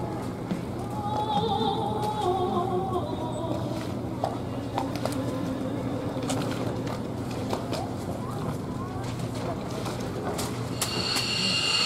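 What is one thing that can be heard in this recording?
A woman sings through loudspeakers.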